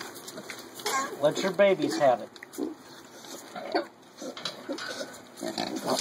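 A piglet munches and slurps food from a bowl.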